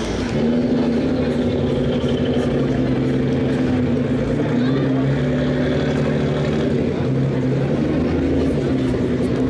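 Car engines rumble and roar loudly as two cars accelerate hard down a track.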